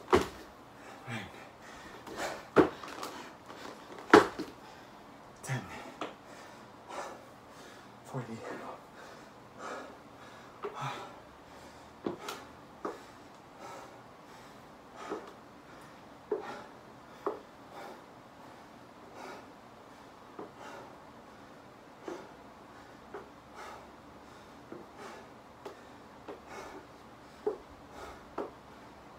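Feet thump on a floor mat during a workout.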